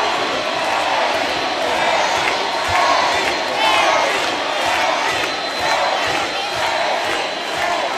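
A male singer sings through loudspeakers.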